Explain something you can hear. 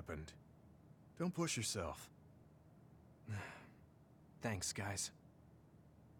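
A young man speaks calmly in short lines.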